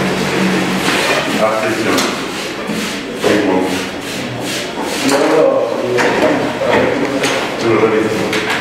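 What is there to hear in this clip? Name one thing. A man speaks calmly at a moderate distance.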